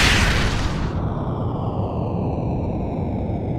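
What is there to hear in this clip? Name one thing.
Heavy metal bodies clash and grind together.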